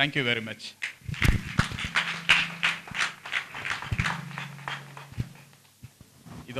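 A small group of people clap their hands.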